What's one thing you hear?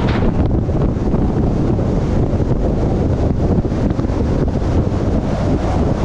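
Wind buffets loudly and rumbles outdoors.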